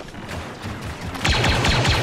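A blaster rifle fires rapid shots close by.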